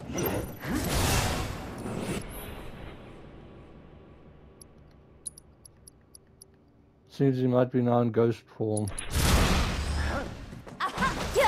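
Magic bursts crackle and roar.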